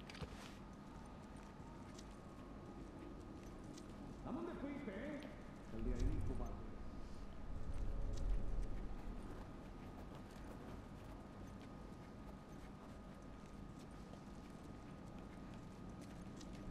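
Soft footsteps creep across a hard floor.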